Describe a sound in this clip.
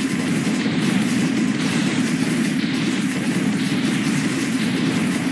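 Rapid gunfire and explosions boom and crackle without pause.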